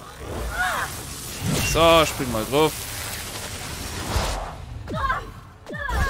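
A blade swings and strikes with sharp swishes.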